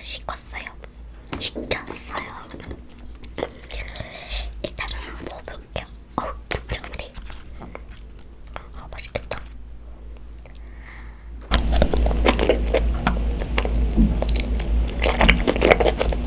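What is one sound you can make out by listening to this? Chopsticks tap and scrape against a plastic bowl close to microphones.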